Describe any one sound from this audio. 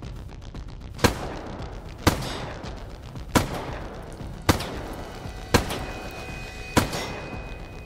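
Rifle shots bang out one at a time at a steady pace.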